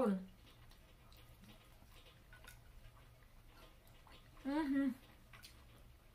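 A woman chews and slurps food.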